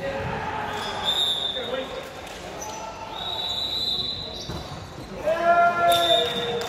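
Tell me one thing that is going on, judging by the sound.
Shoes squeak sharply on a gym floor in a large echoing hall.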